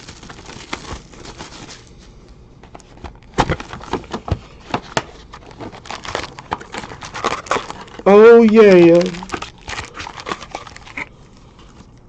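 Card packs crinkle and rustle as hands tear them open.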